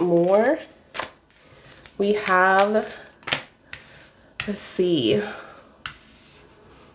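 Playing cards tap softly onto a table.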